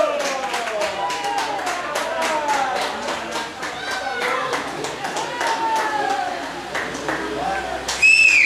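Young boys shout and cheer in celebration outdoors.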